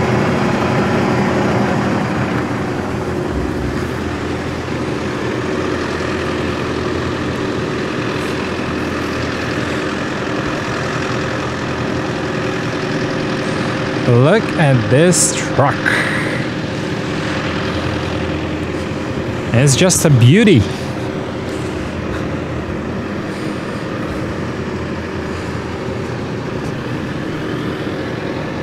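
A diesel truck engine idles steadily close by.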